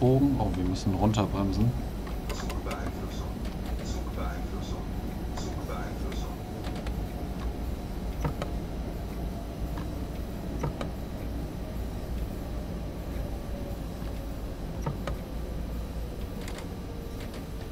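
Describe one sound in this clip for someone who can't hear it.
A windscreen wiper swishes back and forth.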